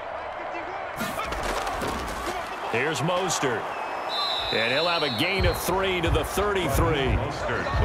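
Football players' pads thud and crash together in a tackle.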